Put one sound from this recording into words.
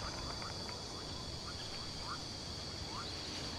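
Footsteps rustle softly through grass.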